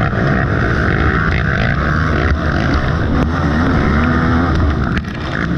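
A motorcycle engine roars and revs up close.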